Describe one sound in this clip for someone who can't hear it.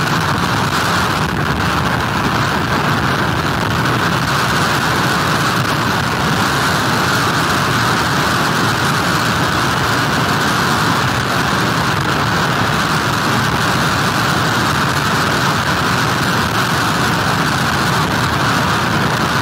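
Rough waves crash and churn on a shore.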